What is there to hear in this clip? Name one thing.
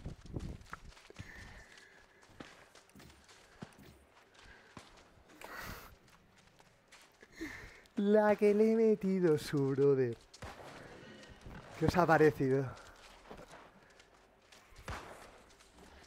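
Footsteps run quickly across soft sand.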